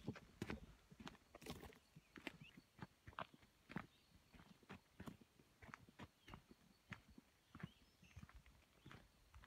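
Footsteps crunch steadily on a dirt trail.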